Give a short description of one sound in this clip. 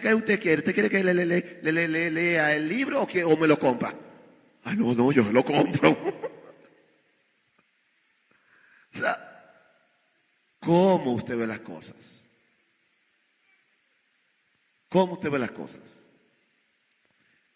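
A man preaches with passion into a microphone, in bursts with pauses, in an echoing hall.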